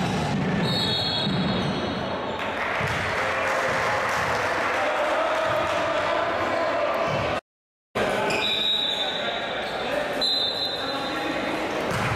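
A referee's whistle blows shrilly several times.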